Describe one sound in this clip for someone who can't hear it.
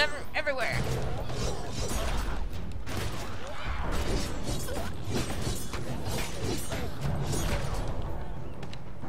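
Zombies snarl and groan.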